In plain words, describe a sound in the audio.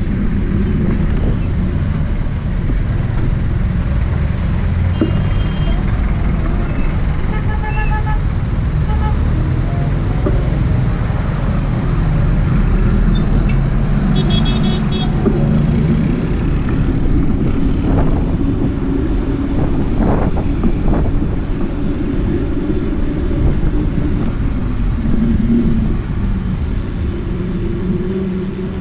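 Wind rushes past over the engine noise.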